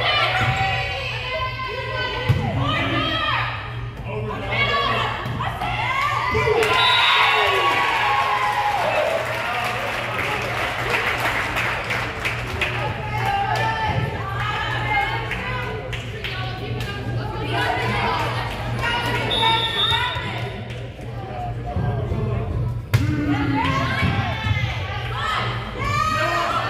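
A crowd of spectators chatters.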